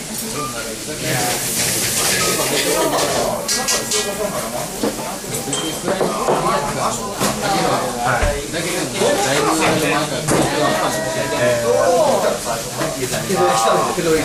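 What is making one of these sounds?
Dishes and bowls clink and knock.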